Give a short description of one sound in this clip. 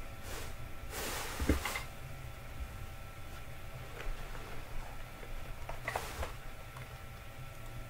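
Paper pages rustle.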